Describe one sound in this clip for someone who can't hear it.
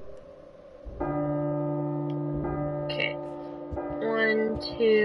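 An alarm clock rings loudly.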